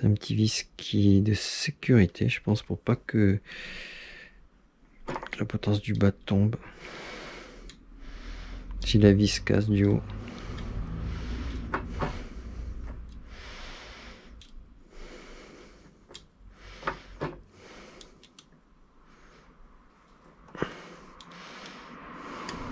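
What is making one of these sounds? A small metal tool clicks and scrapes against screws.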